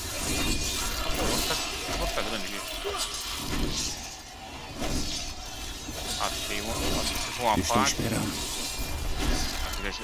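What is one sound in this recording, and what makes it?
Game spells crackle and burst in quick bursts.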